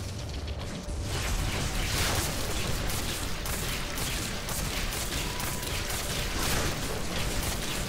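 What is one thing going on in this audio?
Magic blasts crackle and whoosh in rapid bursts.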